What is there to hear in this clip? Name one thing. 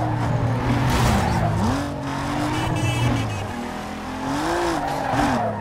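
A car engine revs loudly, its pitch rising and falling.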